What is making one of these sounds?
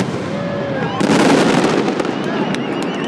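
A large firework burst booms with a rushing roar.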